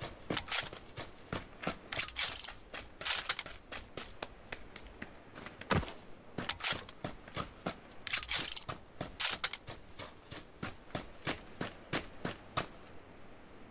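Footsteps thud quickly on dirt and grass.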